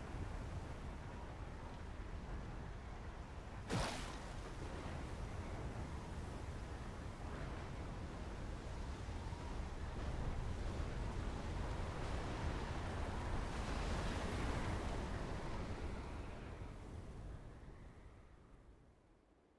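A storm wind roars and howls loudly.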